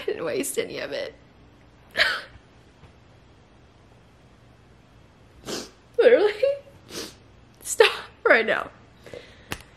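A young woman speaks emotionally close by, her voice breaking.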